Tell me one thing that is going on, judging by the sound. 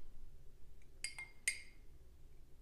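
A metal spoon clinks against a glass bowl.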